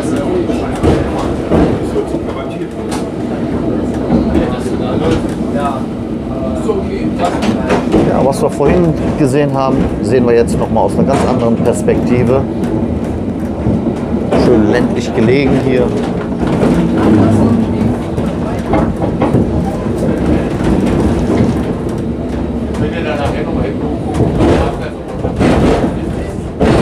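A tram rumbles and rattles steadily along the tracks.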